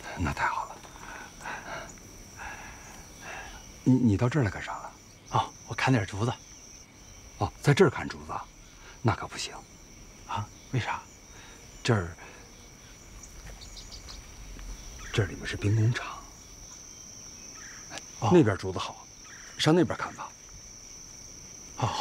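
A man talks with animation nearby.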